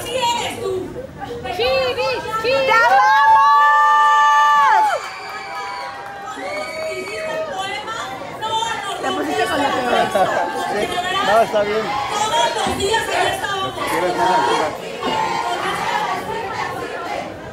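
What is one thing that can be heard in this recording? A large crowd cheers and screams loudly.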